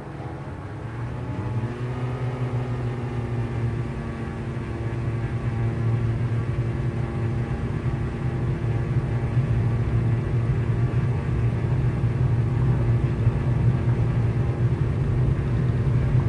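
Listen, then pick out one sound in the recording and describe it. A propeller engine revs up sharply and roars loudly during the takeoff roll.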